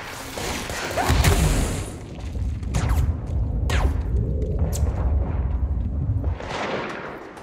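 Debris crashes and clatters as objects smash apart.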